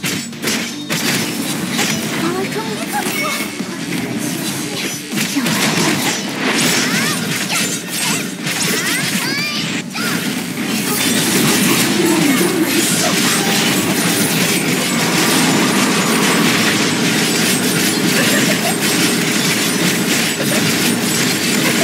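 Sword slashes and impacts clash rapidly.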